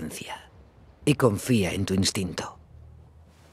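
A young woman speaks calmly in reply.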